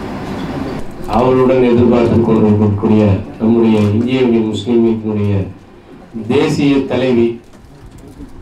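A man speaks steadily into a microphone, heard over loudspeakers in a hall.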